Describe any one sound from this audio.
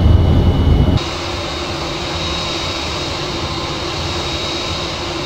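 A jet engine whines with a steady high hum, heard from outside.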